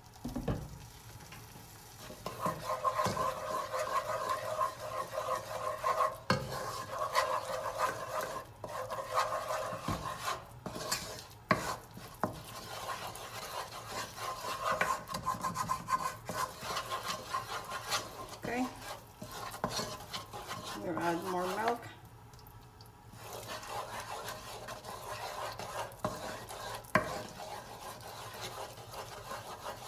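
A wooden spoon scrapes and stirs a thick roux in a metal saucepan.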